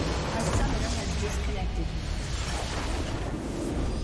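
A base structure explodes with a loud blast.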